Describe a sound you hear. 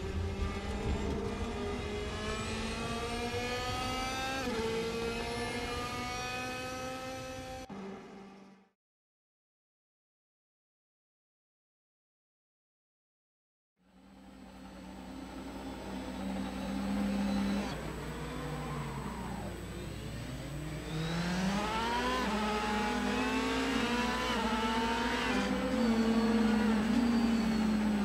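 A racing car engine roars and climbs in pitch, dropping briefly with each gear change.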